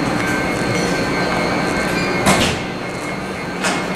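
A train rolls out of an echoing underground station.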